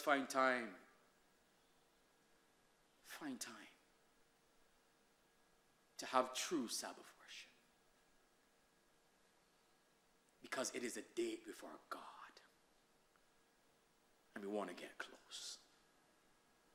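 A man speaks emphatically into a microphone in short bursts with pauses.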